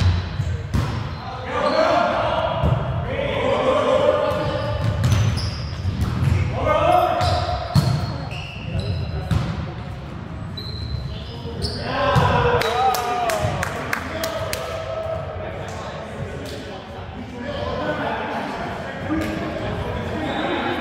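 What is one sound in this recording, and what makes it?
Sneakers squeak on the wooden court.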